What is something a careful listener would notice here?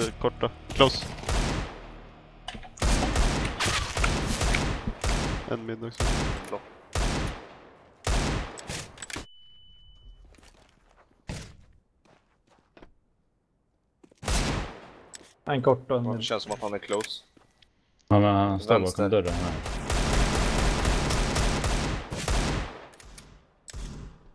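Pistol shots crack sharply in quick bursts.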